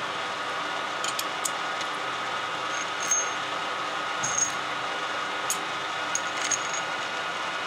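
A metal tool clicks against a lathe chuck.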